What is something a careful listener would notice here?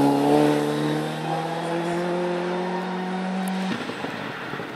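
A rally car engine roars loudly as the car approaches.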